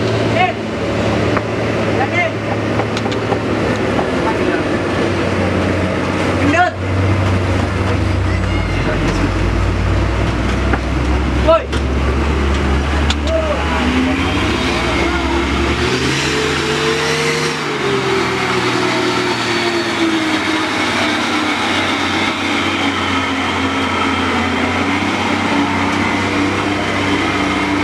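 A heavy truck engine rumbles and strains as the truck crawls through mud.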